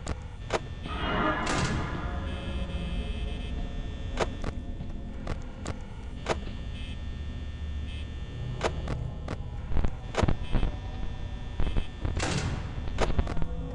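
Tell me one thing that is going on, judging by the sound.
A monitor flips down with a quick whoosh.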